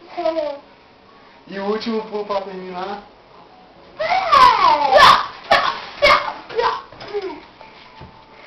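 Young children shout and squeal playfully close by.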